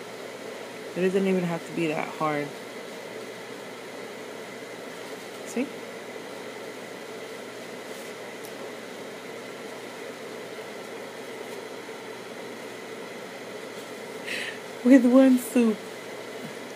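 A woman speaks briefly and softly, close by.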